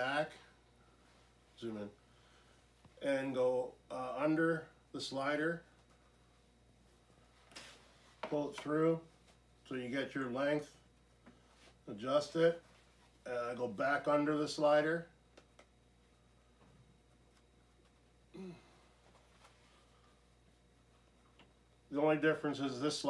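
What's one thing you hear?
A middle-aged man talks calmly close by, in short bursts with pauses.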